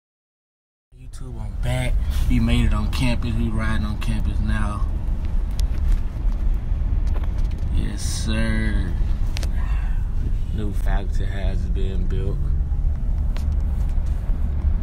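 A young man talks with animation close to a phone's microphone.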